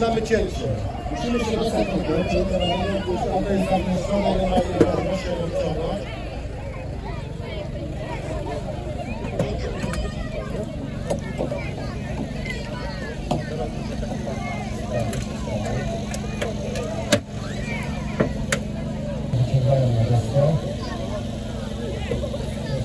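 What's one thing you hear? A man talks into a microphone, heard over a loudspeaker outdoors.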